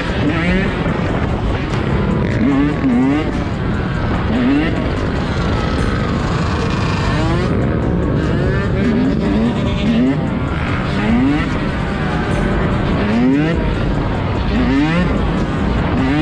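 Many motorbikes drone and rev all around.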